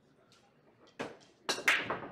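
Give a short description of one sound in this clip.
A cue strikes a billiard ball sharply.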